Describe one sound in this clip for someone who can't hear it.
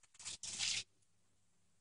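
Paper rustles as a book is handled.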